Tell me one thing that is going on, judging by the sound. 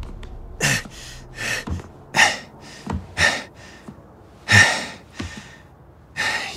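A man breathes heavily and gasps close by.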